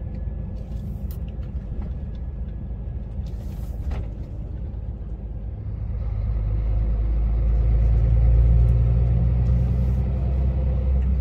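A large vehicle's engine rumbles steadily and grows louder as it speeds up.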